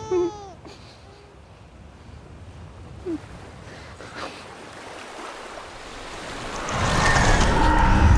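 A man sobs quietly.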